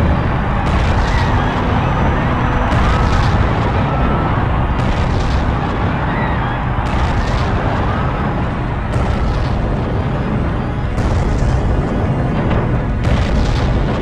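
Heavy footsteps stomp slowly and evenly.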